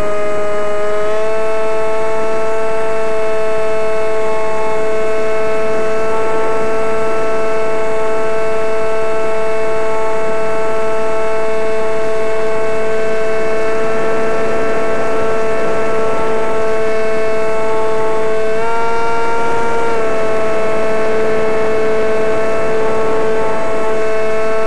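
A small aircraft's motor whines steadily close by, its pitch stepping up briefly now and then.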